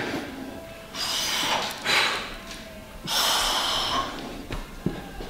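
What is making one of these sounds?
A man breathes out hard and fast.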